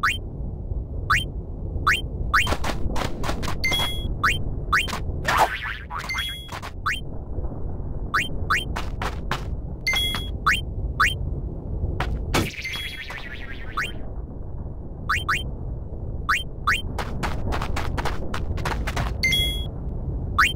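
Menu cursor blips click rapidly and repeatedly.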